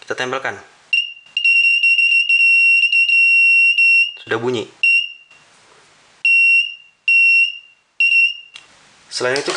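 An electronic buzzer beeps with a steady high tone, in long and short bursts.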